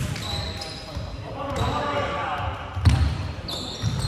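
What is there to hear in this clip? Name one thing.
A volleyball bounces on the floor.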